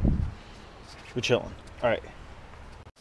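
A young man speaks briefly, close by.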